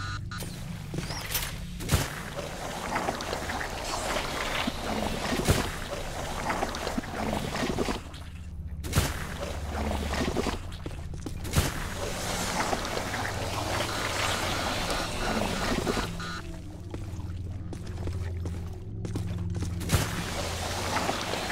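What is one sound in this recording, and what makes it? An energy beam crackles and sizzles in bursts.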